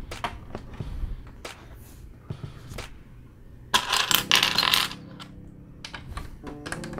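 Plastic toy bricks click and rattle as hands handle them.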